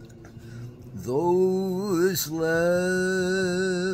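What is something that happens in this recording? An elderly man speaks slowly in a drawn-out voice close to the microphone.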